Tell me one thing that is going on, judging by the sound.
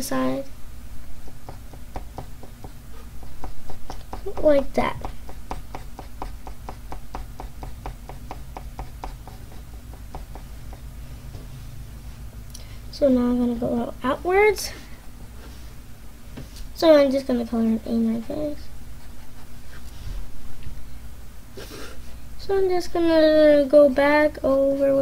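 A pencil scratches rapidly across paper.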